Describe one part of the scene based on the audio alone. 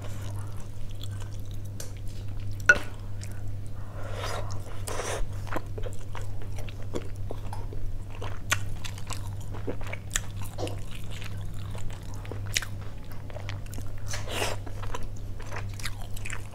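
A woman chews and slurps food close to a microphone.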